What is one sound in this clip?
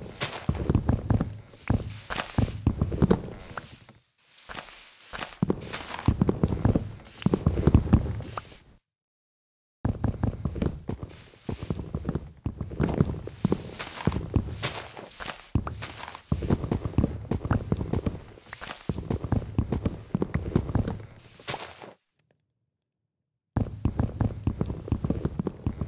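Wooden blocks crack and thud under repeated axe blows.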